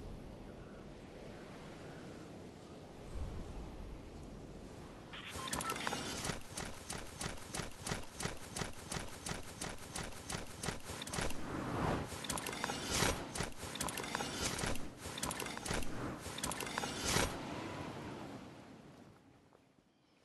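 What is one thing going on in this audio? Wind rushes past steadily during a fall through the air.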